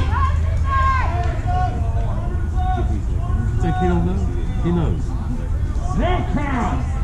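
Young players shout and call out from across the field.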